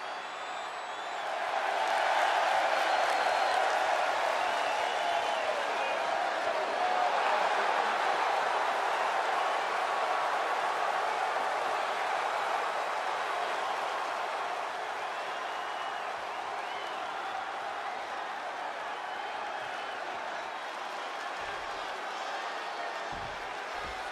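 A large crowd cheers loudly in a big echoing arena.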